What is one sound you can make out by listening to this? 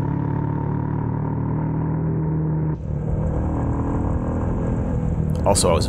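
A motorcycle engine hums while cruising along a road.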